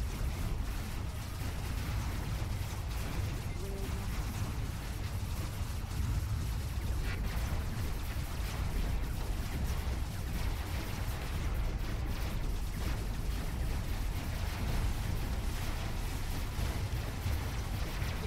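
A robot's engines hum and roar steadily as it moves.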